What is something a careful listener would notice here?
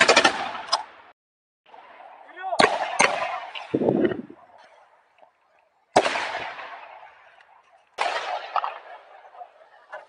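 Gunshots crack loudly and echo outdoors.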